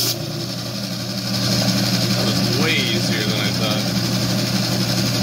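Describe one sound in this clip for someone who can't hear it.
A small power saw motor hums steadily.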